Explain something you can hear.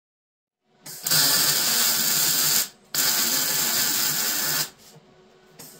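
An electric welder crackles and buzzes loudly in short bursts.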